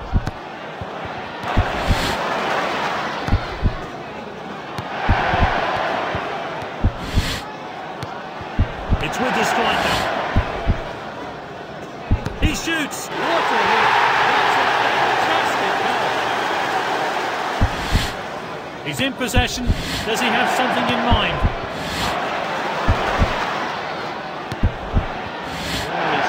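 A football is kicked with sharp thuds, again and again.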